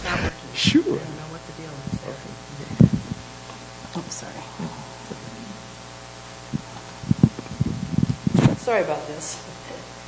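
A man speaks a few quiet words nearby.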